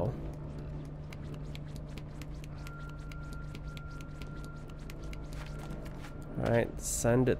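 Small footsteps patter quickly across a hard tiled floor.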